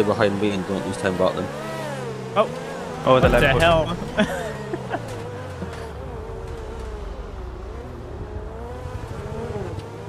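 A race car engine roars and shifts in pitch as it accelerates.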